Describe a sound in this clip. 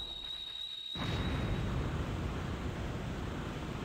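A fire bursts up with a loud roar and keeps roaring.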